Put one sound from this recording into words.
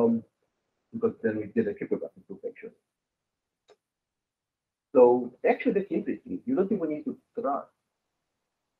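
A man speaks calmly into a microphone, heard as in an online talk.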